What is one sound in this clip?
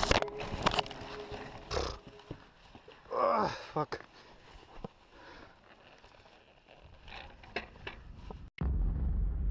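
A bicycle rattles and bumps over rough dirt ground.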